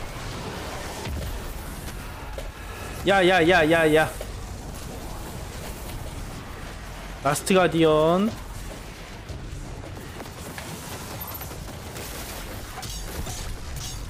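Energy weapons fire in quick bursts.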